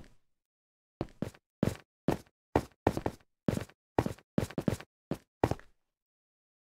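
Footsteps tread on stone at an even pace.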